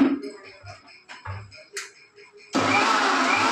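Dishes and utensils clink and knock on a counter.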